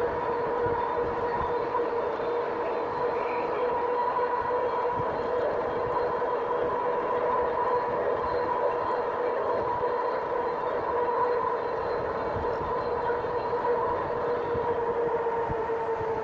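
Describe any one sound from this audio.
An electric motor whines steadily.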